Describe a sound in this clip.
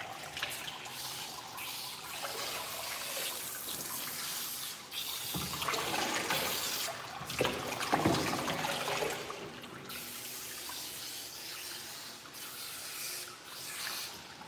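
Water splashes and trickles steadily.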